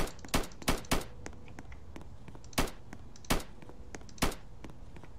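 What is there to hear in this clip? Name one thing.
A rifle fires sharp shots, one after another.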